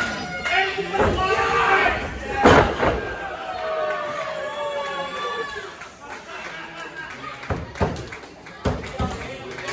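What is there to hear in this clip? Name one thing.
Bodies slam heavily onto a wrestling ring's mat.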